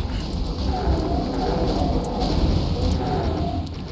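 Large energy blasts explode with a loud boom.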